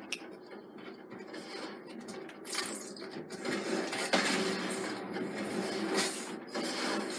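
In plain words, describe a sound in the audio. Video game gunfire and effects play loudly through a television speaker.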